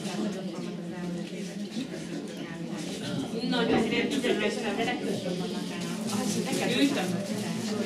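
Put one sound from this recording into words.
People murmur and talk quietly in a room.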